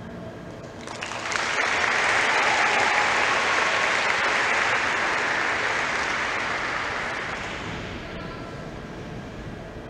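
A large audience applauds loudly in a big hall, swelling up and then slowly fading.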